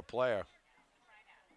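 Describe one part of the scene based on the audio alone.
A man shouts a short call loudly nearby.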